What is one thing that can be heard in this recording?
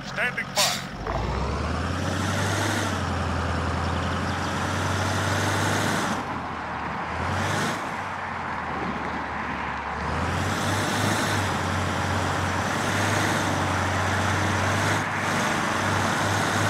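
An armoured vehicle's engine rumbles steadily as it drives along a road.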